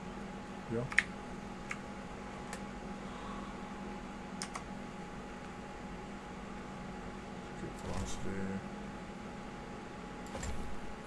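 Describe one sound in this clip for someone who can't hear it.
Menu clicks tick now and then.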